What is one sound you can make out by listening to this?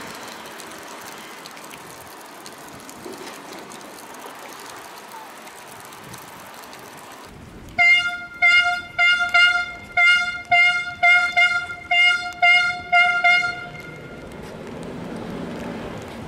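A vehicle drives slowly over wet pavement.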